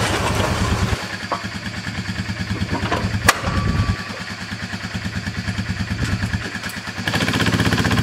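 An ATV engine idles with a steady chugging putter.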